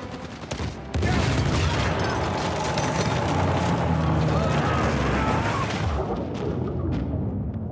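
Water rushes and roars in with a deep rumble.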